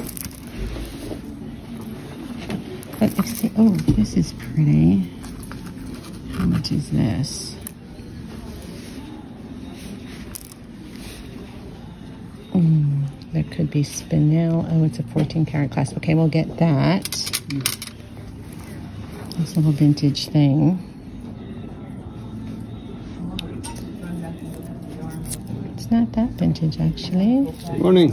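Beads and metal chains clink softly as they are picked up and handled.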